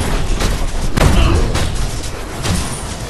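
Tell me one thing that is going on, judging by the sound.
Explosions burst loudly in a fight.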